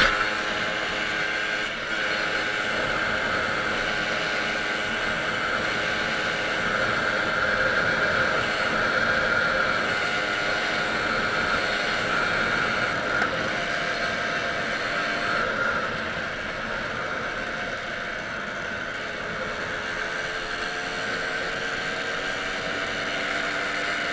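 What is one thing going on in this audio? A motorcycle engine hums steadily as the bike rides along a road.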